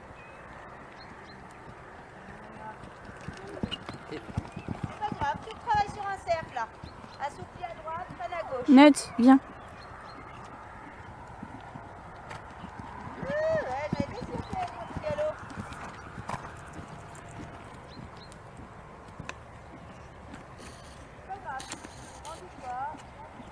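A horse's hooves thud on soft sand at a trot.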